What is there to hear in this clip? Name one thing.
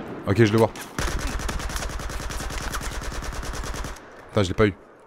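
A rifle fires a rapid, steady burst of shots.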